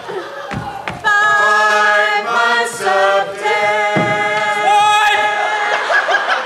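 Men sing loudly through loudspeakers in a large echoing hall.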